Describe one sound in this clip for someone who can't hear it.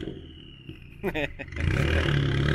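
A car exhaust pops and crackles sharply.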